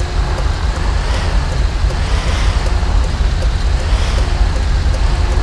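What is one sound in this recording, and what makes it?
A truck scrapes and bumps against parked cars.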